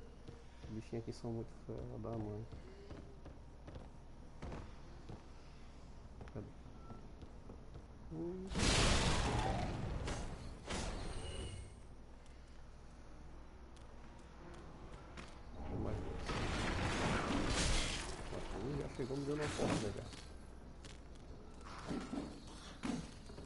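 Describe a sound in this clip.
Heavy armoured footsteps thud on wooden steps.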